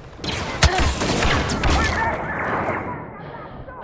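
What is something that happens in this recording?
A sci-fi blaster rifle fires laser bolts in a video game.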